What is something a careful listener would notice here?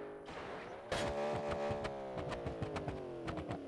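A car crashes with loud metallic bangs and crunches.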